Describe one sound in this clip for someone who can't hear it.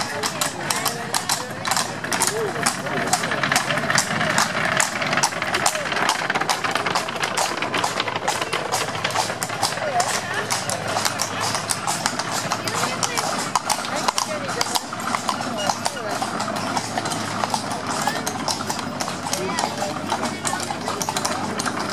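Wooden carriage wheels rattle over cobblestones.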